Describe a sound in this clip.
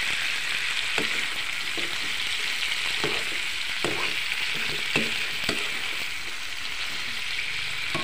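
A metal spatula clinks against a pan.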